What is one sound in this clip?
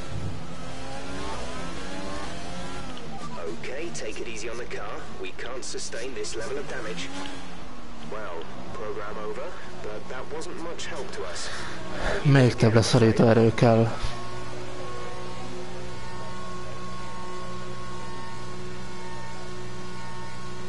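A racing car engine whines loudly, rising and falling in pitch, then drones steadily.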